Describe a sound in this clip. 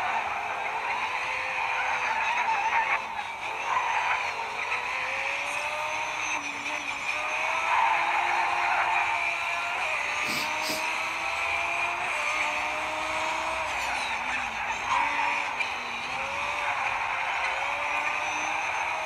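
Tyres hiss on a wet track.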